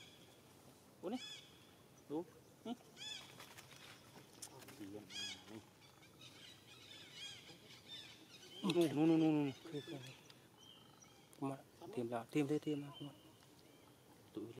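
A young monkey squeals and whimpers close by.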